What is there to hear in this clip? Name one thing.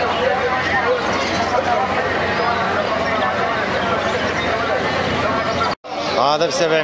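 Many small birds chirp and twitter busily.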